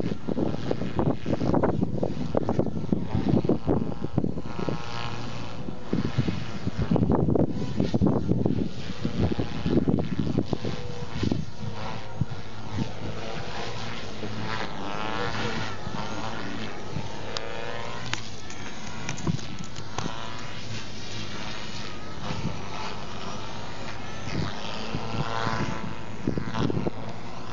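A model helicopter's rotor and motor whine, rising and falling in pitch as it swoops and flips.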